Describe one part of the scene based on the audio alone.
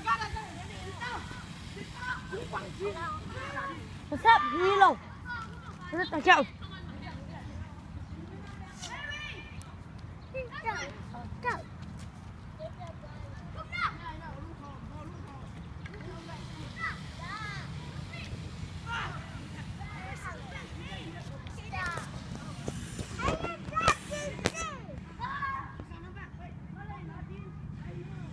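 Children shout and call out at a distance while they play outdoors.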